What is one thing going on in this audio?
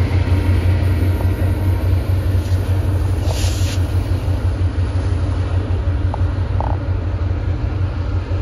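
A diesel locomotive engine rumbles steadily as the train rolls along the tracks.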